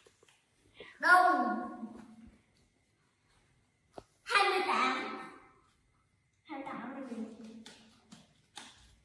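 A young boy speaks close by in short bursts.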